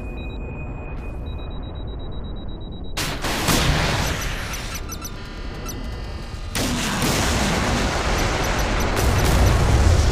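A jet plane's engines roar steadily.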